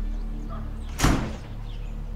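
A door latch clicks.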